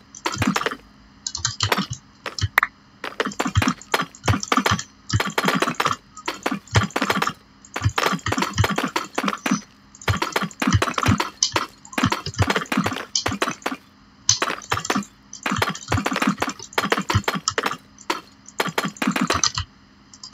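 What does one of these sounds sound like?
Stone blocks knock softly as they are placed one after another.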